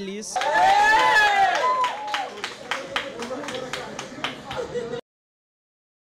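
A group of young men and women cheer and whoop excitedly close by.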